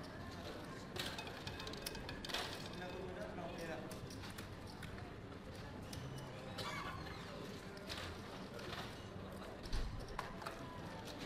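Casino chips clatter and click as they are stacked and pushed across a table.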